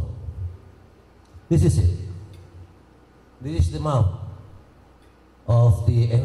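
A middle-aged man speaks with animation through a microphone and loudspeakers in an echoing hall.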